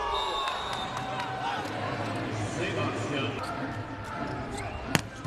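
A large indoor crowd cheers and chatters, echoing through an arena.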